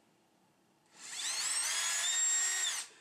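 A cordless drill whirs as it drills into a plastic mount.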